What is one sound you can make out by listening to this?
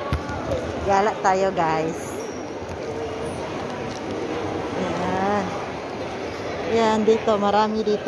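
A young woman talks nearby in a lively voice.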